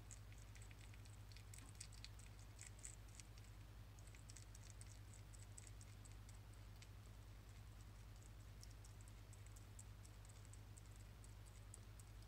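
Fingers stroke a hedgehog's quills with soft, rapid crackling.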